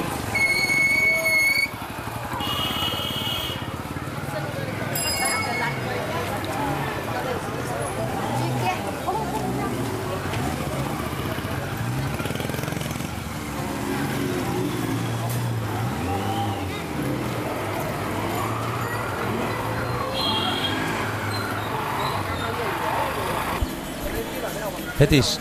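A busy crowd chatters outdoors.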